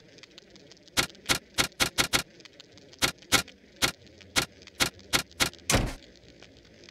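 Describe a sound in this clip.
Short electronic clicks sound in quick succession.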